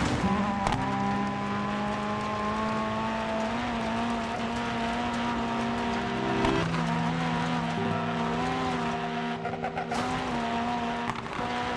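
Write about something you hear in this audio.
Gravel crunches and sprays under a car's tyres.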